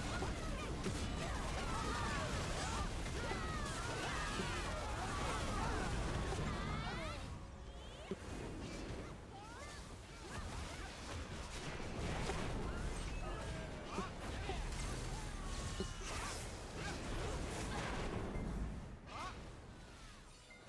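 Weapons strike and magic bursts crackle in rapid bursts.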